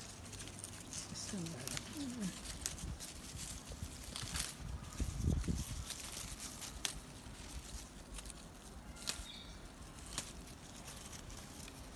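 Leaves rustle as a hand moves through plants.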